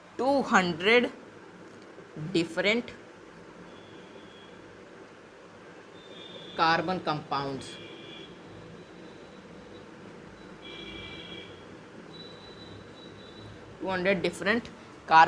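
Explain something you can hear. A boy speaks calmly nearby.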